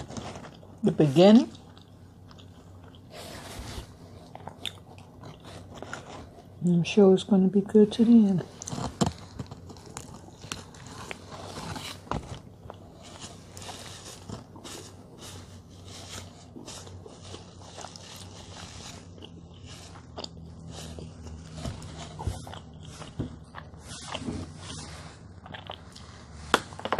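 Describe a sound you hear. Paper wrapping crinkles and rustles.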